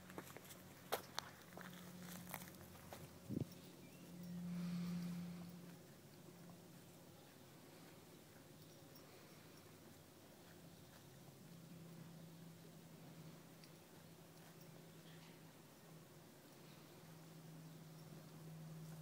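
A horse tears and crunches grass close by.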